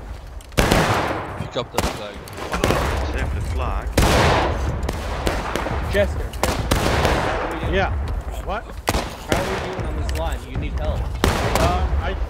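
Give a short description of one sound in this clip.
Metal clinks as a ramrod loads a rifle.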